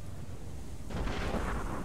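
Cannons boom from sailing ships.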